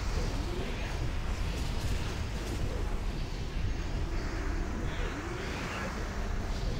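Magic spells crackle and boom in a loud, busy battle.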